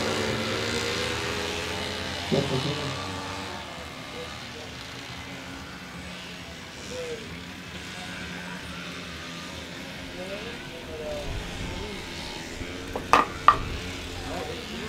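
Motorcycle engines whine and rev in the distance, rising and falling in pitch.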